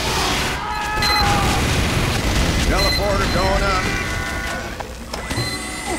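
An explosion booms with a roar of flames.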